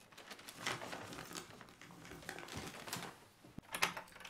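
A door swings shut.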